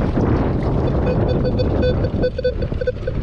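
A metal detector beeps in quick repeated tones.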